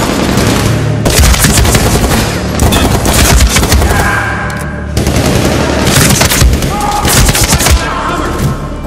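A rifle fires rapid, loud bursts of gunshots.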